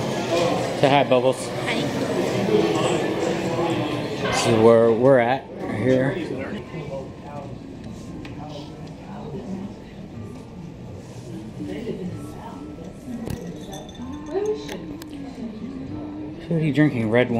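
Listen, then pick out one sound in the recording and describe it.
A young woman talks and laughs nearby.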